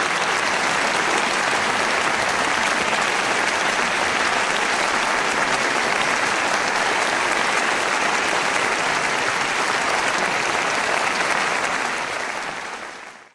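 A large audience applauds in a large hall, then the applause fades.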